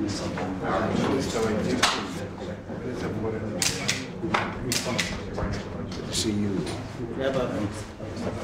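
Several men chat warmly nearby in a murmur of overlapping voices.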